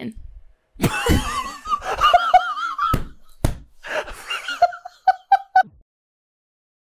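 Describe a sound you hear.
A young man laughs loudly and shrieks with animation.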